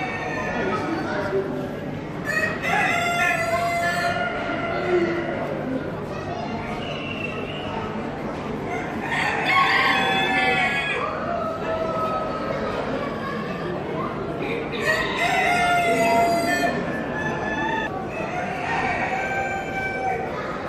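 Pigeons coo softly.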